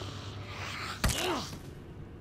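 A blunt weapon strikes a body with a wet thud.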